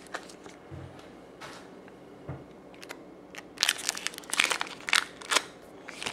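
A foil wrapper crinkles and rustles as a hand picks it up.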